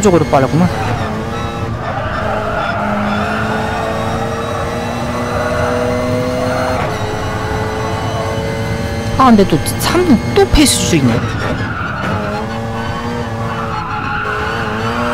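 A racing car engine roars at high revs, climbing steadily in pitch.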